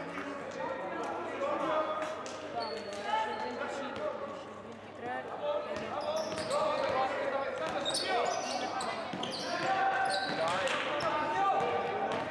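Sneakers squeak sharply on a hardwood court in a large echoing hall.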